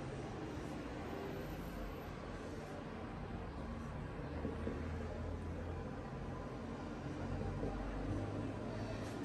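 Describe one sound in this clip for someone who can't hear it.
A marker squeaks and scrapes across a whiteboard.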